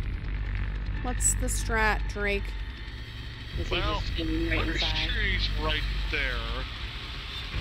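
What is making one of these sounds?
A young girl talks with animation into a close microphone.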